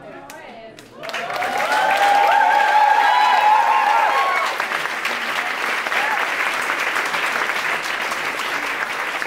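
A crowd cheers and whoops loudly in a large room.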